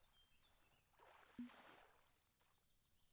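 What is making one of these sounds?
A fish splashes into calm water.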